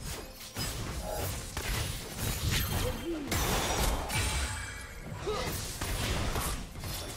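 Attacks thud and clash repeatedly.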